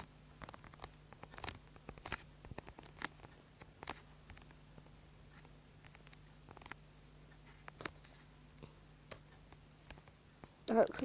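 Blocks are placed with short soft clicks.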